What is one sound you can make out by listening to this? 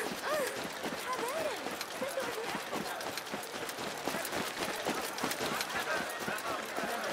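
Quick footsteps run over sandy ground.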